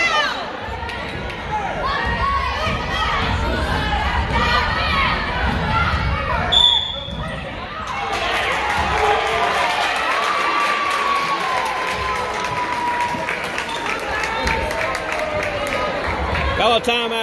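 Basketball players' sneakers squeak on a hardwood court.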